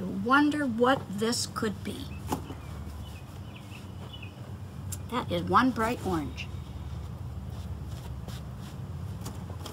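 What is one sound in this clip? Cloth rustles as it is smoothed out.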